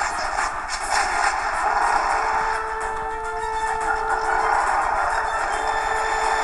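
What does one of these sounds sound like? Electronic game music plays through a small, tinny speaker.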